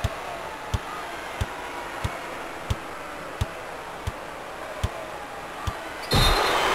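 A basketball bounces steadily on a hardwood court.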